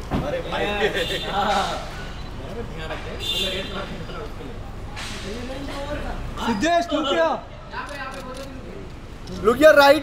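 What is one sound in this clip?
A man laughs and talks cheerfully close by.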